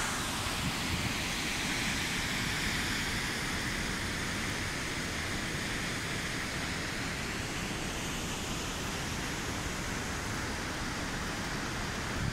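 Water rushes and roars steadily in a gorge.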